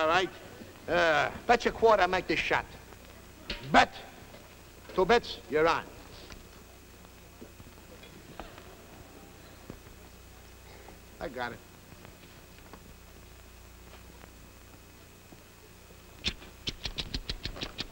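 A man speaks with animation in short bursts, with long pauses.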